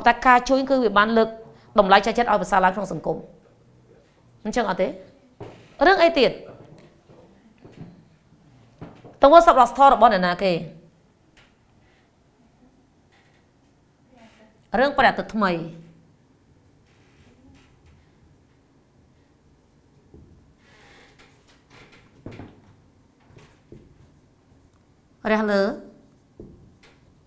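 A woman speaks clearly and calmly, as if explaining.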